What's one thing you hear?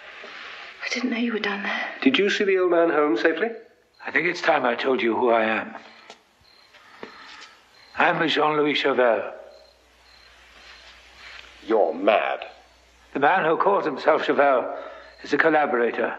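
A middle-aged man speaks intensely, close by.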